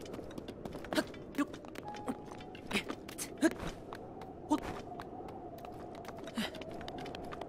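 Hands and feet scrape and knock while climbing a stone wall.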